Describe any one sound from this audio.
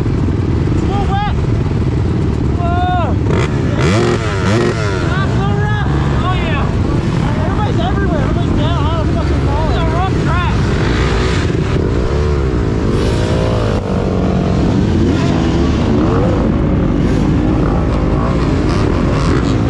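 Knobby tyres spin in loose dirt.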